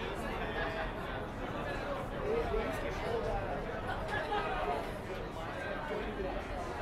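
Men and women chatter nearby.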